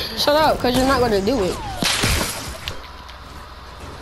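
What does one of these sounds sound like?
A pickaxe strikes with a sharp clang.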